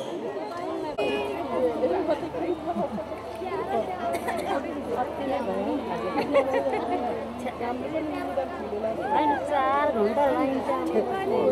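A crowd of women chatters close by.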